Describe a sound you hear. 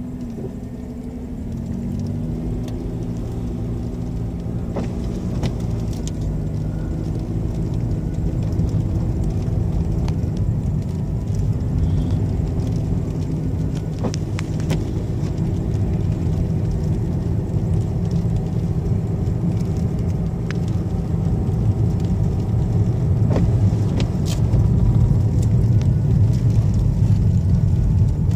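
A car engine hums steadily from inside the car, rising in pitch as the car speeds up.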